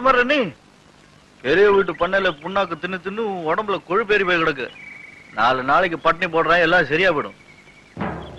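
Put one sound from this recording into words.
A man calls out loudly to an animal.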